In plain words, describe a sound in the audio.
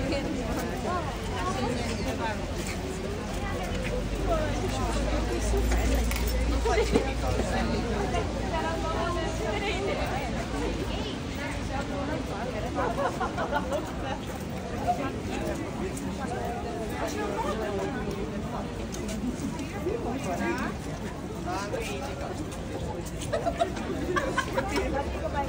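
A woman talks cheerfully nearby.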